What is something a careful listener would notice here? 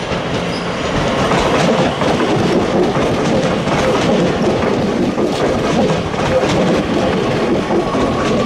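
Train wheels rumble and clatter over rail joints as the train passes close by.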